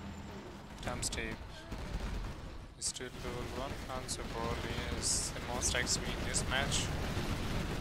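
Explosions boom and crackle.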